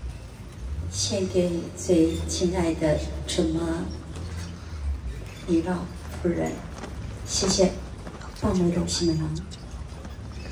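A woman speaks slowly through a microphone and loudspeakers.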